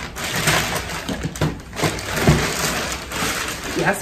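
A cardboard box thumps as it is set down.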